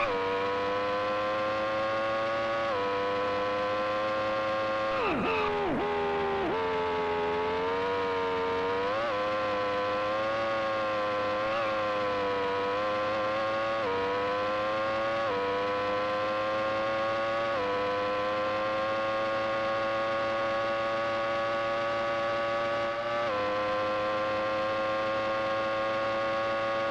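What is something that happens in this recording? A synthesized racing car engine drones steadily, its pitch jumping with each gear change.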